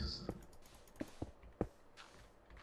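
Stone blocks thud softly as they are set in place.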